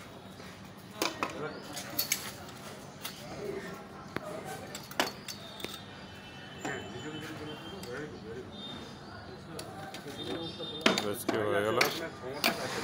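Metal tongs knock and clatter against a wooden box.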